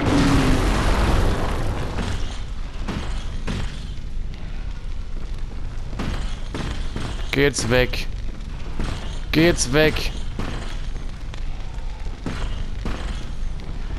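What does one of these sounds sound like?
Rungs of a ladder knock softly as someone climbs.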